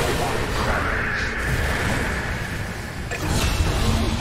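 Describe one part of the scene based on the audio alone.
Magical spell effects whoosh and crackle during a fight.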